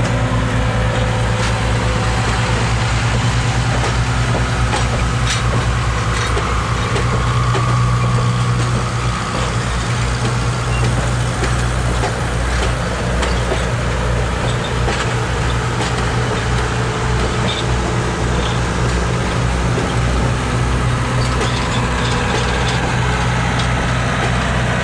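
Passenger train cars rumble past close by on the tracks.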